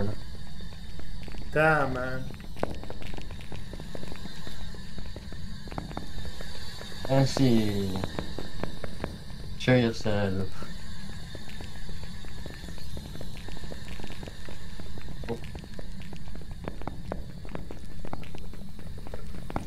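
Footsteps tap on a hard floor in an echoing corridor.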